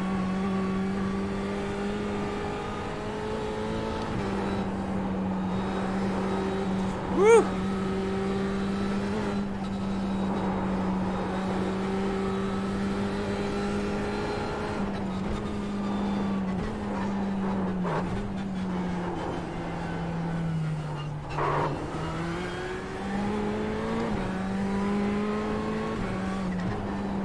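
A racing car engine drones steadily, its pitch dipping and rising with gear changes.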